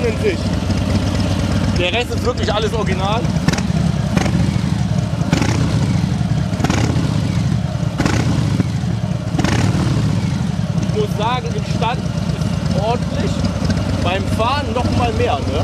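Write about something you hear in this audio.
A motorcycle engine idles with a deep, loud rumble.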